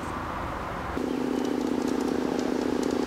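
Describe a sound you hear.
A small model train motor hums steadily along its track.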